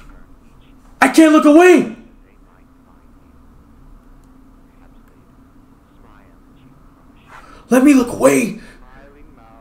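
A man cries out loudly, close to a microphone.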